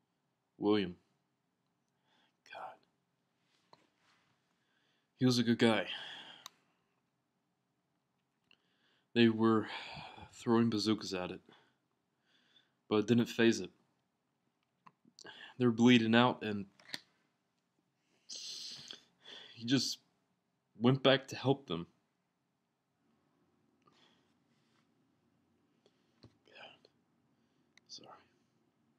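A young man speaks calmly in short bursts, close to a microphone.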